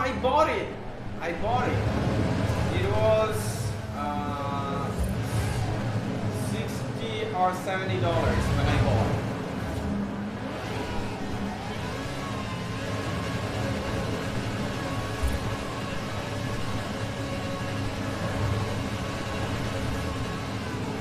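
A sports car engine roars and revs up and down.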